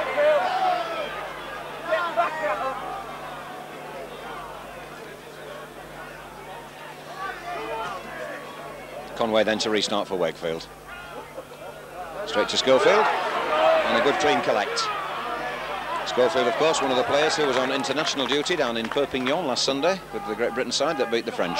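A large crowd cheers and roars in a stadium, swelling loudly at times.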